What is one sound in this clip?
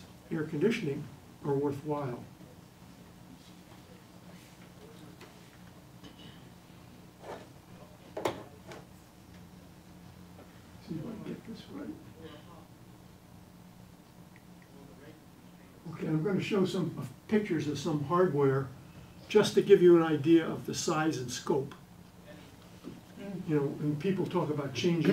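An elderly man lectures calmly, heard through a microphone.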